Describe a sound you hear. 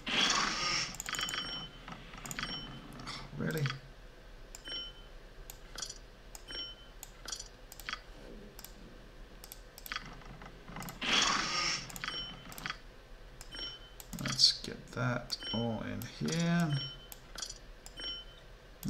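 Short menu clicks sound as game windows open and close.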